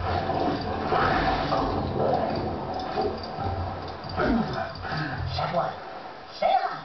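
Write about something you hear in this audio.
Cartoonish fighting thuds and effects play through a television loudspeaker.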